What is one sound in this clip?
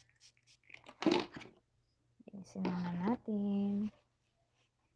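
A young woman speaks softly close to a microphone, drawing out some words.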